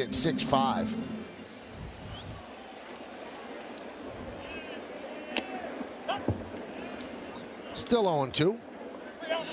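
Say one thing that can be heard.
A large crowd murmurs steadily outdoors.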